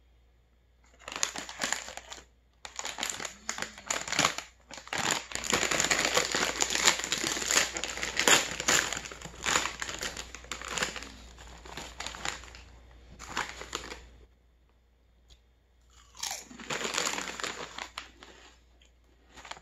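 A plastic snack bag crinkles loudly as it is handled.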